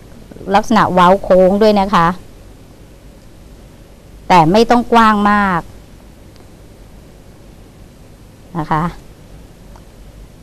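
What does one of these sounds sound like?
A small knife scrapes and cuts into a firm vegetable.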